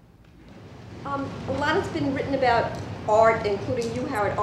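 A woman speaks with animation.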